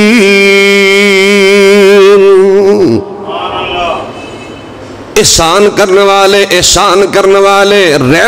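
A man chants in a long, sustained melodic voice through a loud microphone with echo.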